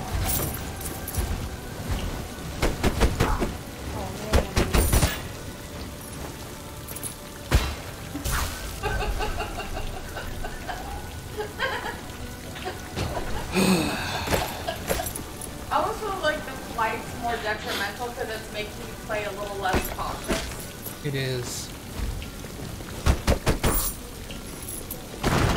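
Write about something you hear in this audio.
Video game weapons and spells zap and clang in quick bursts.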